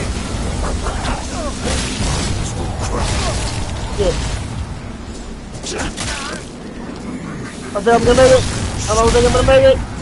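Electricity crackles and zaps in short bursts.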